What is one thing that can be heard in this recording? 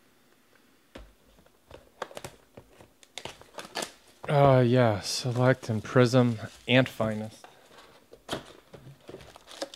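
Hands shuffle and tap a cardboard box.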